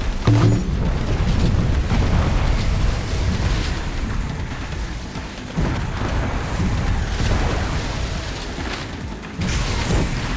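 A speedboat engine roars steadily.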